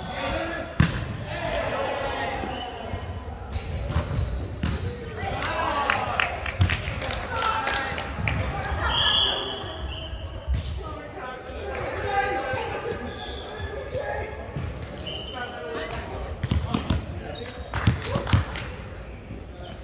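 Young men call out and talk loudly in a large echoing hall.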